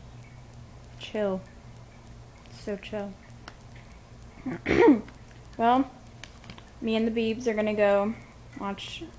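A teenage girl speaks close to a phone microphone in short, tired phrases.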